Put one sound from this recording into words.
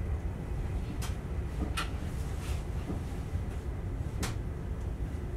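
Wheels clack over rail joints.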